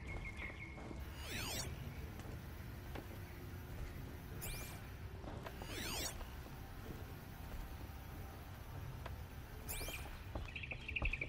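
A shimmering electronic sweep rings out.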